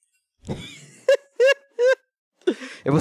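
A young man laughs in short bursts.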